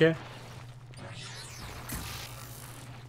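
A burst of magic energy whooshes and crackles.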